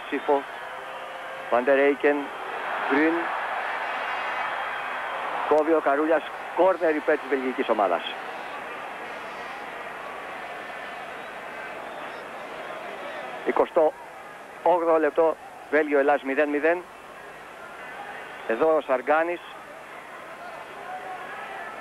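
A stadium crowd roars, swelling and then settling to a murmur.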